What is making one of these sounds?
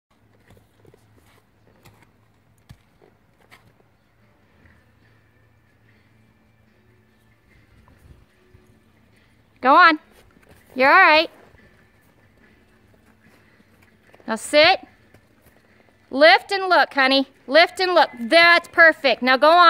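Horse hooves thud softly on loose dirt at a slow lope.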